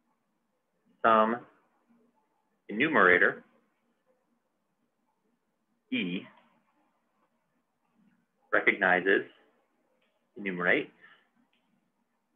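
A young man speaks calmly and slowly, in short phrases, close to a microphone.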